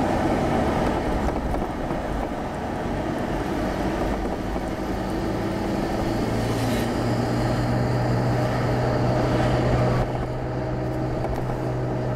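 Tyres roll over the road with a steady rumble.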